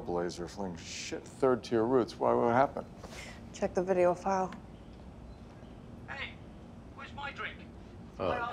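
A man speaks tensely.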